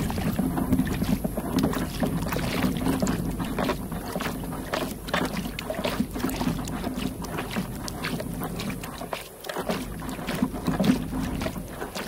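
Water laps against a kayak hull.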